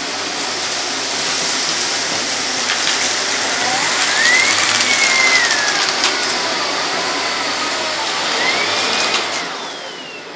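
Grit and small debris rattle as they are sucked up a vacuum hose.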